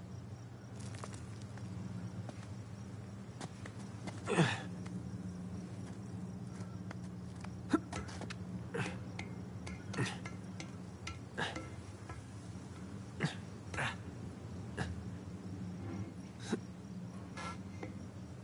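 Hands grab and scrape against stone and metal ledges.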